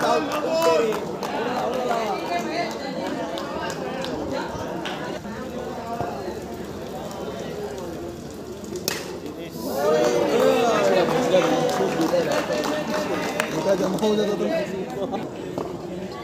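Several men shout and call out across an open sports ground.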